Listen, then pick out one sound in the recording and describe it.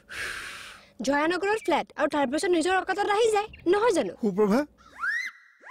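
A young woman speaks loudly and with animation close by.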